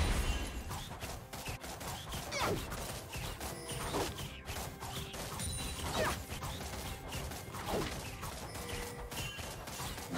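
Spell effects and attacks crackle and zap in a fast game battle.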